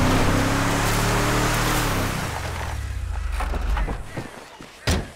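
A car engine roars over dirt and slows to a stop.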